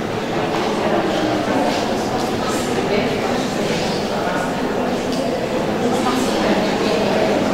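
A crowd of people chatters and murmurs in a large echoing hall.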